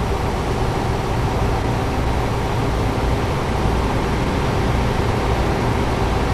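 A truck passes close by.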